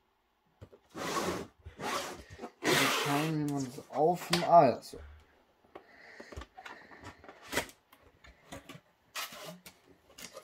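A cardboard box scrapes and rustles as it is handled and tipped up.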